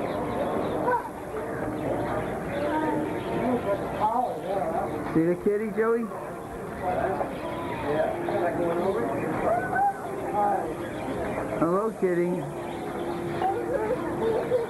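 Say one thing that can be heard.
Adults talk close by.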